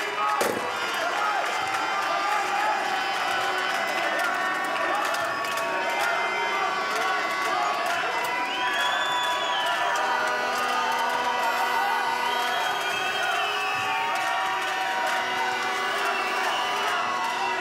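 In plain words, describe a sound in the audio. A large crowd cheers and chants in an echoing arena.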